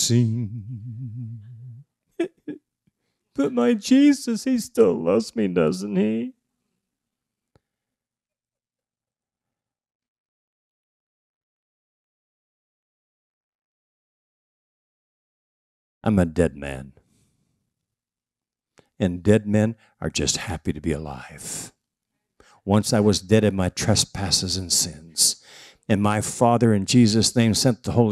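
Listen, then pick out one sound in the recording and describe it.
A man speaks calmly into a microphone, heard through loudspeakers with pauses.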